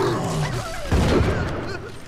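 Electricity crackles and zaps in sharp bursts.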